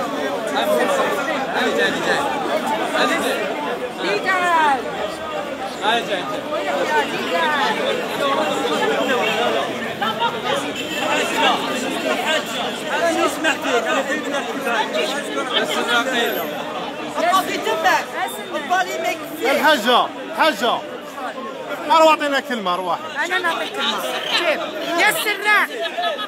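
A crowd of men and women talks loudly nearby, outdoors.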